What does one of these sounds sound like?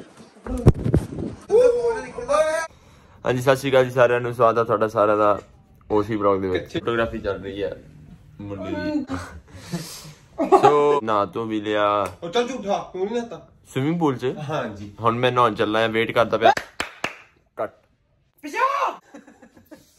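A young man talks animatedly close by.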